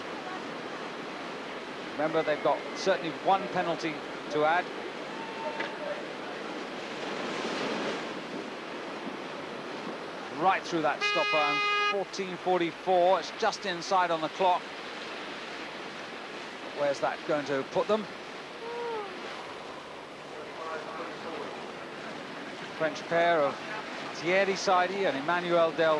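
Paddles splash through rough water.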